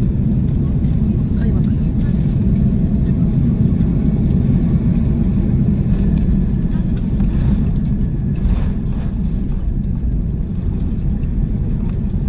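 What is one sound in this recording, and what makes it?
Jet engines roar steadily as an airliner rolls along the ground.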